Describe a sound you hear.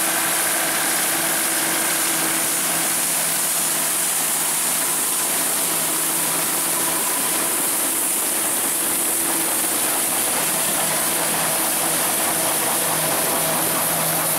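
Wheat stalks rustle and crackle as a combine harvester cuts through them.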